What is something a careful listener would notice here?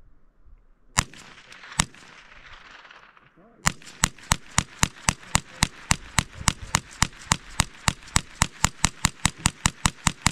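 A rifle fires two shots outdoors, then a rapid string of shots follows.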